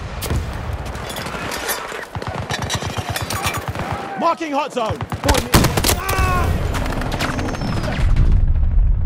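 Rapid gunfire crackles and bangs close by.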